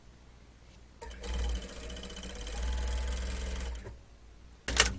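A sewing machine whirs as it stitches fabric.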